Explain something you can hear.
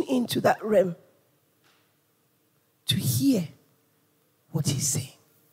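A woman speaks with feeling into a microphone, in short bursts with pauses.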